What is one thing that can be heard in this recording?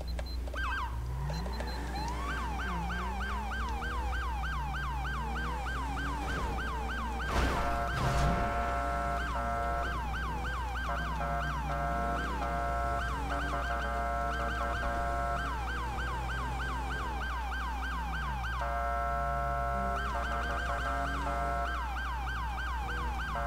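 A car engine revs and drops as the car speeds up and slows.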